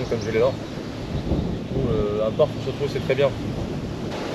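A man talks nearby.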